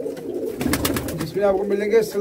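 A pigeon flaps its wings in a quick burst.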